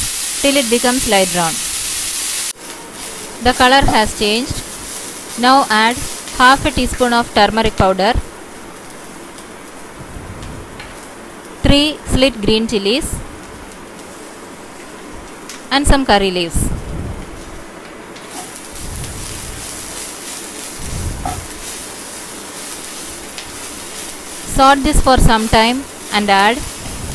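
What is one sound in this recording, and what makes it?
A wooden spatula scrapes and stirs food in a frying pan.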